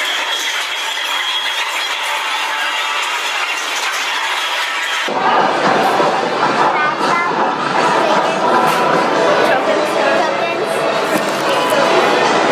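An arcade game plays bright electronic sounds.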